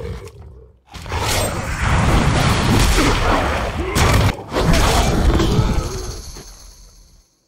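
Weapons clash and strike in a fast fight.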